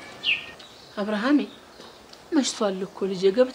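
A woman calls out gently from a short distance.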